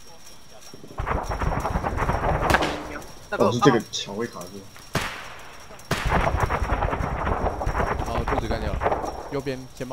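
Heavy boots thud quickly on stone as soldiers run.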